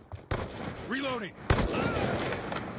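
Gunshots crack in a video game battle.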